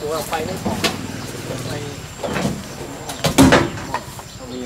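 A plastic crate knocks against a truck's tailgate.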